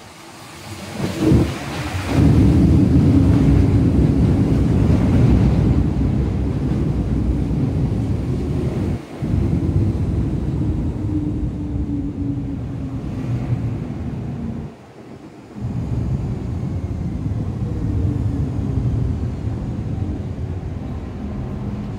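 A train rumbles loudly past with a low, steady roar.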